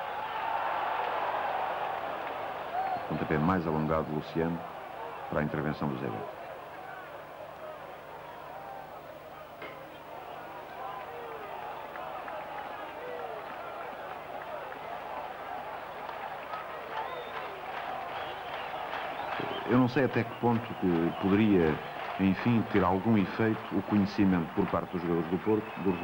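A large crowd roars and murmurs outdoors.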